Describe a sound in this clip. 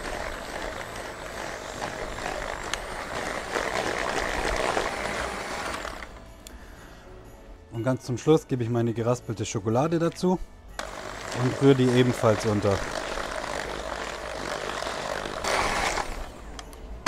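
A hand mixer whirs loudly as it beats batter in a bowl.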